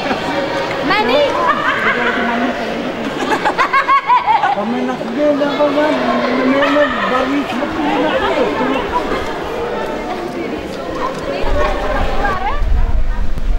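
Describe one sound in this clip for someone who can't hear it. Women laugh and chatter with animation.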